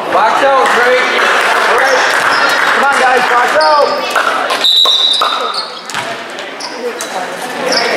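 A crowd of spectators cheers and shouts in an echoing gym.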